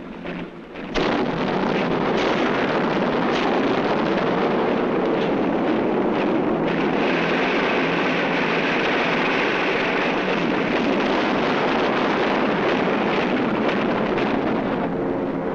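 An aircraft engine roars steadily.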